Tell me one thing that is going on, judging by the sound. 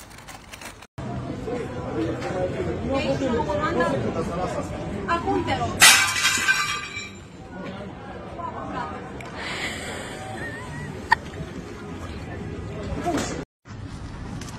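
Diners chatter in the background.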